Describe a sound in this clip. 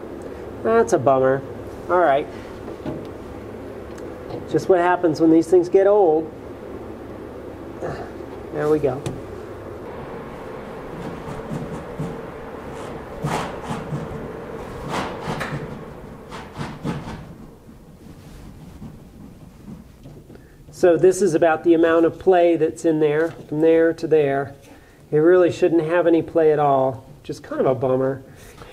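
A hand twists a metal fitting with faint clicks.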